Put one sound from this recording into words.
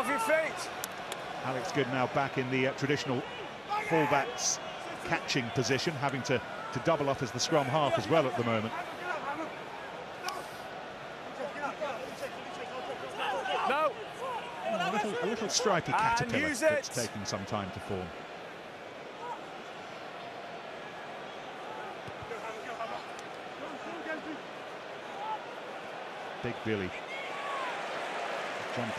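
A large crowd murmurs and cheers in a big open stadium.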